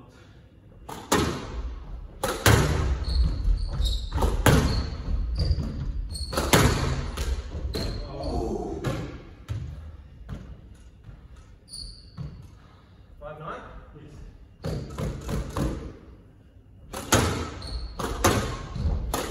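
Squash rackets strike a ball, which smacks off the walls in an echoing court.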